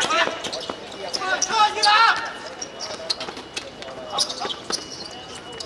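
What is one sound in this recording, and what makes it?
Sneakers scuff and squeak on a hard court.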